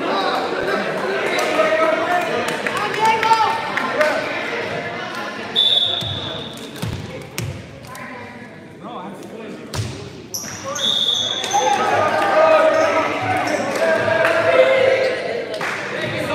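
Many young people talk and shout in a large echoing gym.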